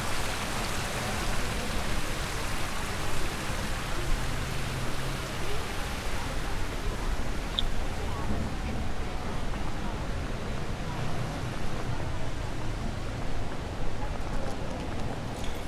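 A crowd murmurs faintly outdoors in a wide open space.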